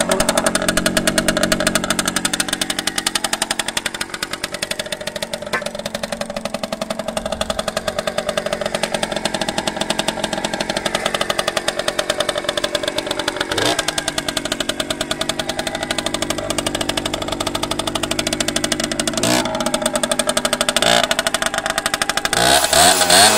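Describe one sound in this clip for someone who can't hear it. A small motorcycle engine idles close by with a fast, steady putter.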